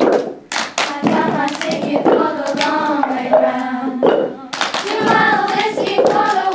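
A group of young girls sings together nearby.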